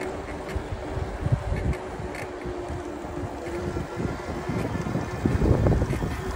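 A bicycle's tyres hum on smooth pavement.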